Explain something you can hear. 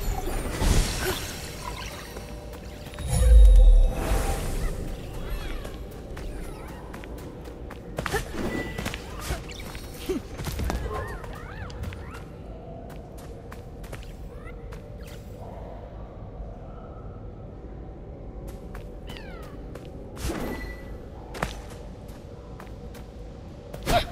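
Footsteps pad softly along the ground.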